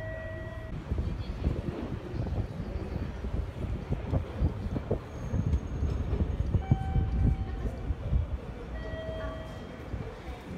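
Ticket gates give short electronic beeps.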